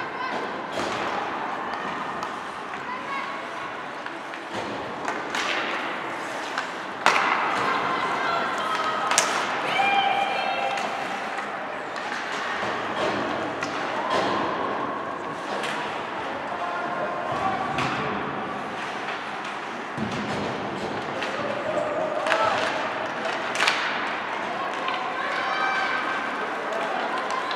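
Young players shout across the echoing rink.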